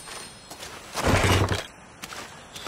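A heavy wooden lid creaks open.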